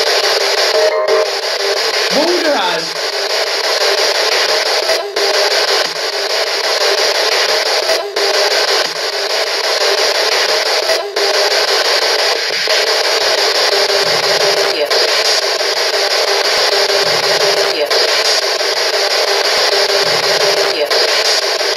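A radio scanner clicks briefly now and then.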